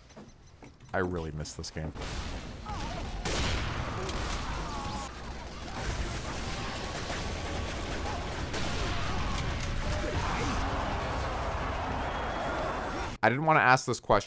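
A sniper rifle fires with a sharp crack.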